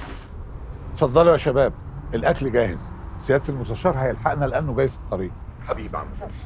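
An elderly man talks with animation.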